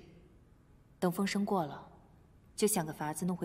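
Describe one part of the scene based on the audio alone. A woman speaks with concern, close by.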